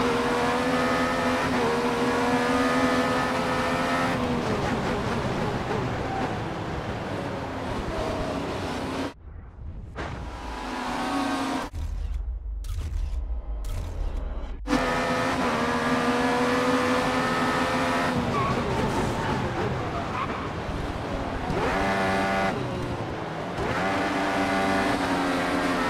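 Racing car engines whine loudly, rising and falling in pitch as gears change.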